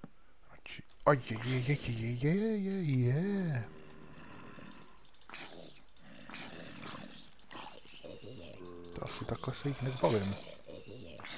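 A zombie groans low and drawn out, several times nearby.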